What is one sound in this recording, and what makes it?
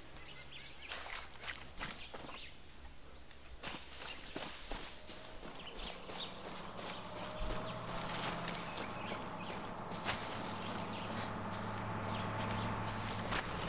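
Footsteps rustle through tall grass and leaves.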